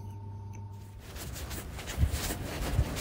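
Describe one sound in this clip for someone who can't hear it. Footsteps scuff along pavement outdoors.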